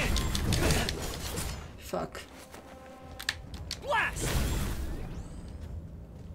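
A sword swishes and clashes in quick strikes.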